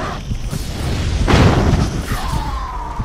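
Fire bursts with a loud whoosh.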